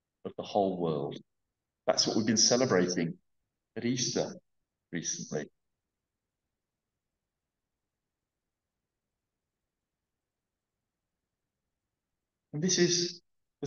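A middle-aged man speaks calmly into a headset microphone, with pauses.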